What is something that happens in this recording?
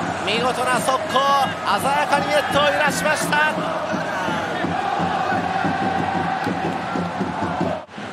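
A large crowd cheers and shouts loudly in a stadium.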